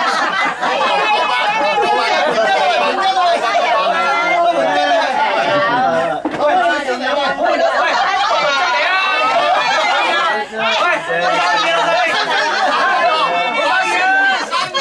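Several people talk and laugh together close by in a lively crowd.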